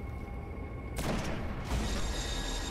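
A heavy rifle fires a single loud, booming shot.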